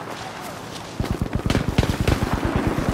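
Footsteps run quickly through brush.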